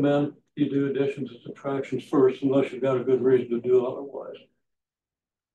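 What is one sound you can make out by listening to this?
An elderly man speaks calmly and clearly, as if explaining, close by.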